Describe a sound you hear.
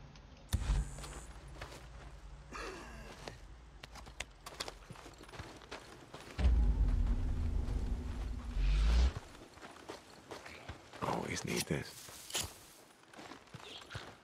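Footsteps crunch on dry dirt and gravel.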